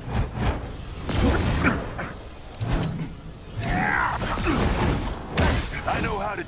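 Blasts and gunshots crack and boom in quick bursts.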